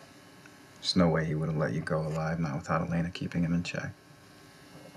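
A man speaks calmly and earnestly, close by.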